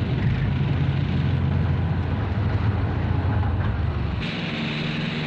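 A heavy tracked vehicle rumbles and grinds over rough ground.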